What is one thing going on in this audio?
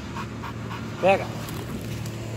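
A dog gives a single sharp bark.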